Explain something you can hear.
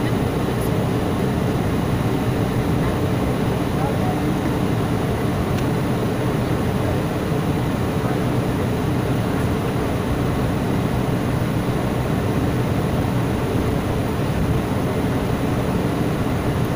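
Jet engines roar steadily, heard from inside an airplane cabin.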